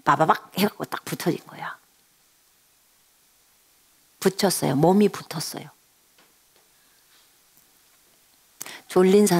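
A middle-aged woman speaks warmly and clearly into a headset microphone, in short phrases with pauses.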